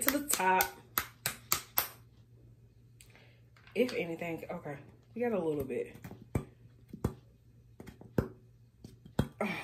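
A plastic bottle taps and rattles in a hand.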